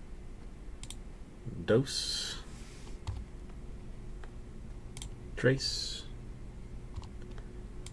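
A computer mouse clicks a few times.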